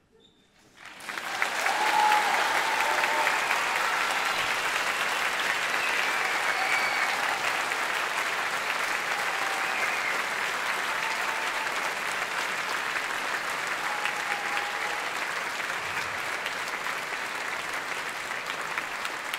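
A large children's choir sings loudly in an echoing hall.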